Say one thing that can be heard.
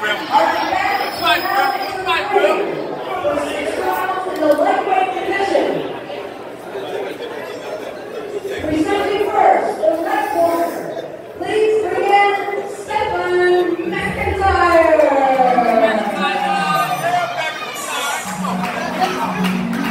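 A crowd chatters loudly in the background.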